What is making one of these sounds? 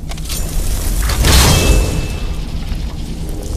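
A magic spell bursts with a loud whoosh.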